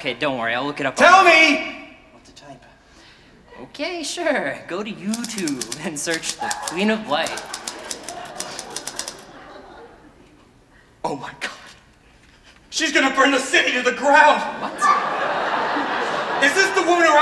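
Fingers tap on typewriter keys.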